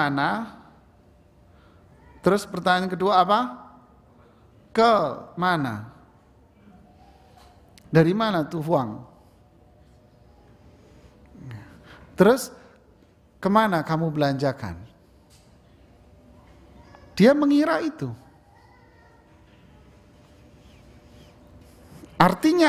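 A man speaks calmly through a microphone in short phrases with pauses, in a room with some echo.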